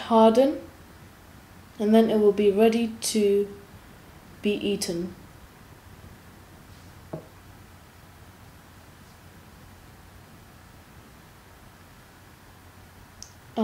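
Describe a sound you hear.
Thick batter pours softly into a glass dish.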